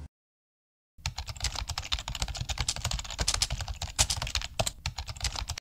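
Fingers tap quickly on a computer keyboard.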